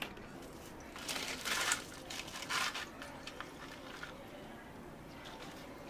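Milk pours into a cup of ice.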